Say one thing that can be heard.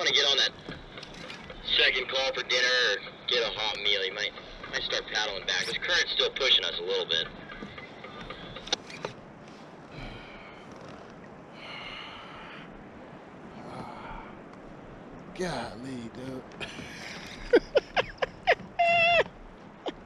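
A fishing reel clicks as line is wound in.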